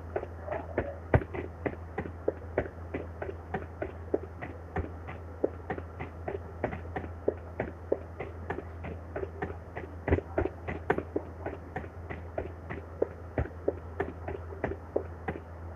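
Footsteps tap steadily on a hard rooftop.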